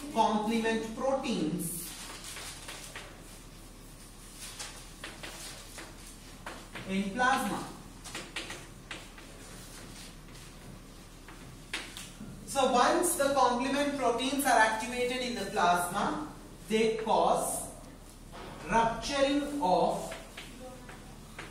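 A man lectures at a steady pace in a room with some echo.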